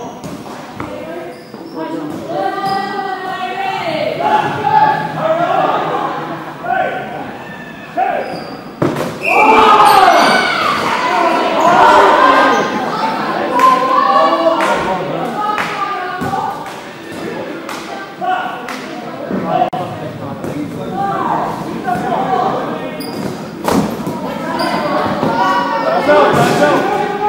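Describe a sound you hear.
A ball thuds as players hit it.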